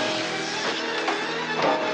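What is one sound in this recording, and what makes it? Metal scrapes and grinds loudly.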